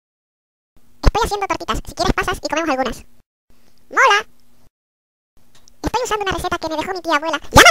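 A young boy speaks with animation.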